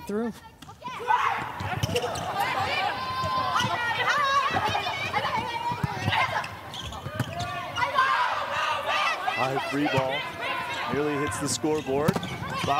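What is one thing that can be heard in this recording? A crowd cheers and roars in a large echoing arena.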